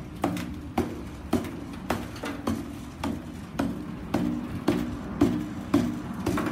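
A hammer strikes a chisel against stone in a steady rhythm, each blow ringing briefly.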